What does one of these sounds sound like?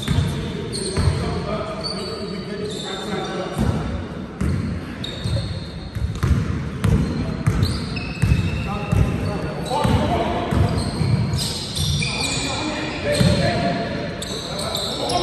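A basketball bounces with hollow thuds on a hard floor in a large echoing hall.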